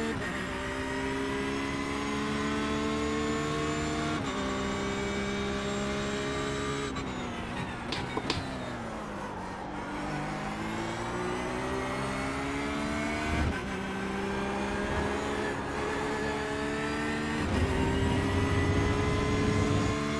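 A racing car engine roars and whines as it revs up through the gears.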